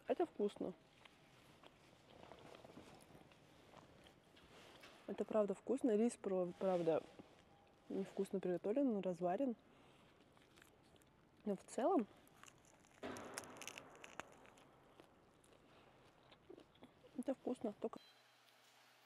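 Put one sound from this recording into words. A young woman talks calmly and closely into a microphone.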